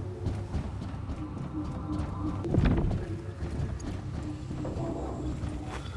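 Footsteps clang on metal stairs.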